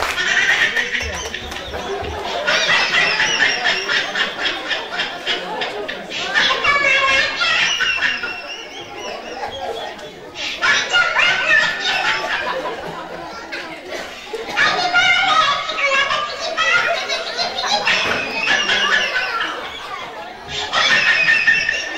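Young boys speak loudly and with animation in an echoing hall.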